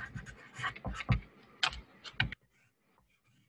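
A marker squeaks on paper.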